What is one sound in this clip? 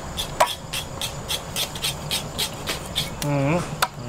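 A knife chops quickly and steadily on a board.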